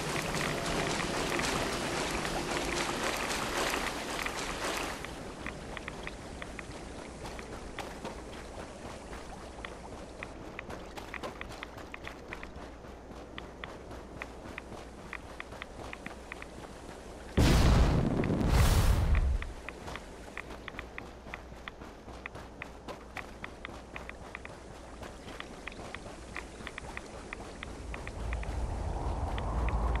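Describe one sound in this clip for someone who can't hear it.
Footsteps crunch quickly over rough ground.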